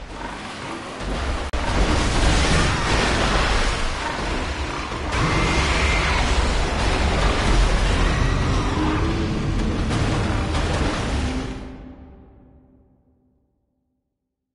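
A monster roars and snarls up close.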